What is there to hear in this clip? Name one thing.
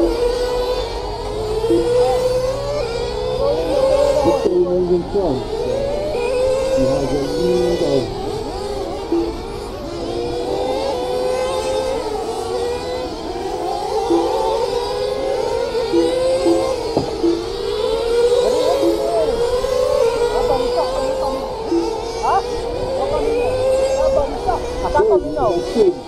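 Small electric model cars whine as they race around a track, rising and falling in pitch.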